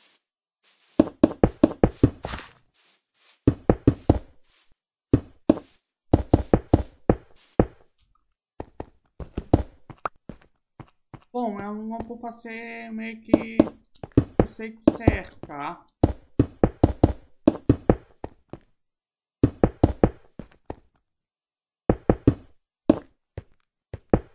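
Stone blocks are placed one after another in a video game, each with a short thud.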